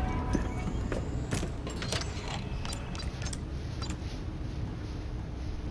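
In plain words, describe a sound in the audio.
Buttons click as a keypad is pressed.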